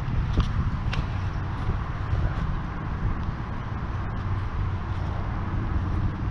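A rope rasps as it is pulled hand over hand through gloves.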